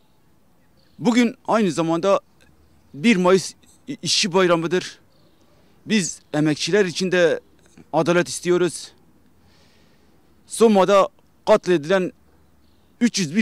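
A man speaks clearly and steadily into a microphone, close by.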